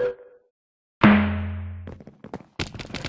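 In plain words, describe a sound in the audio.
A game chime sounds as the countdown ends.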